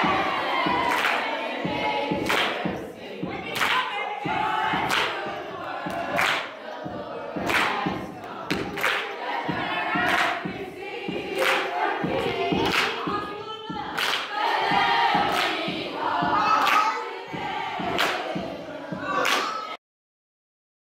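A group of children sings together.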